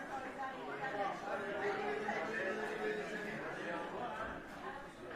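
A crowd of men and women's voices fill the room.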